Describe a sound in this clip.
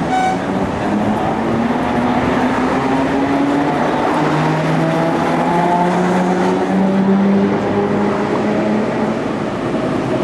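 A tram motor whines, rising in pitch as it pulls away.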